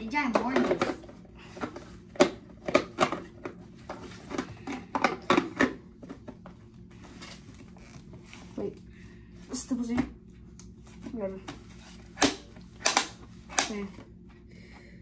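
Plastic packaging crinkles and rustles as a boy tears at it.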